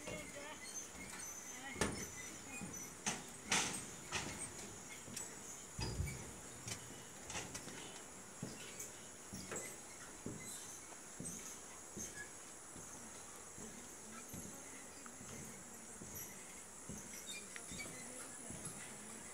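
Footsteps thud steadily on a swaying suspension bridge.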